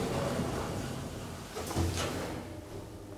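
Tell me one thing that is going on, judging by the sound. Elevator doors slide shut with a thud.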